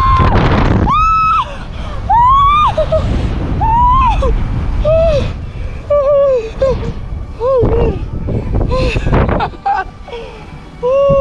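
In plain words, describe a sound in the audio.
Wind rumbles loudly past close by.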